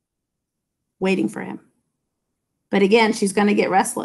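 A middle-aged woman speaks with animation, close to the microphone, as if on an online call.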